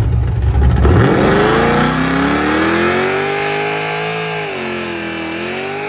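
A car engine revs hard, rising and falling.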